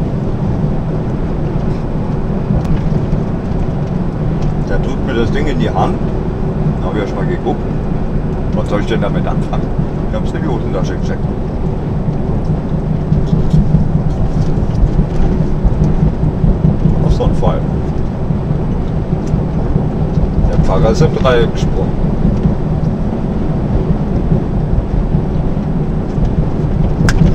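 A truck's diesel engine drones at cruising speed, heard from inside the cab.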